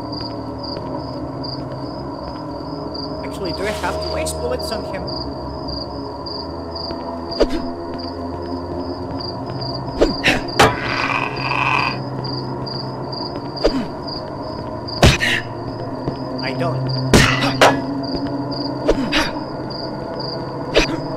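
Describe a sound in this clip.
A blade swishes and strikes with sharp hits, again and again.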